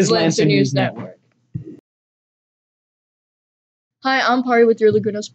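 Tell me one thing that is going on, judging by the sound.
A young woman speaks clearly into a nearby microphone.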